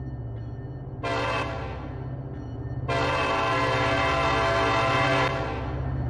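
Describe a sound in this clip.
A train horn blows a short blast, then a long one.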